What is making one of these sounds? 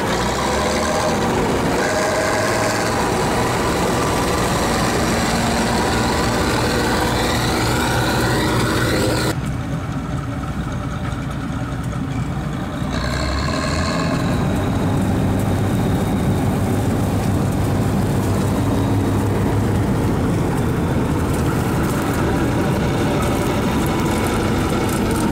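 A combine harvester's diesel engine rumbles loudly and steadily close by.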